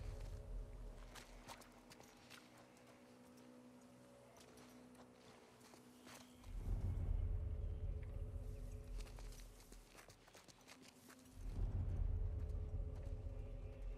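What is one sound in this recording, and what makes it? Tall grass rustles and swishes as someone pushes through it.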